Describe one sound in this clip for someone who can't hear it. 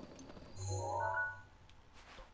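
A game menu chimes softly.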